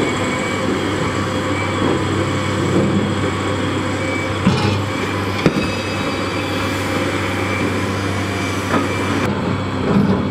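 A large excavator engine rumbles steadily.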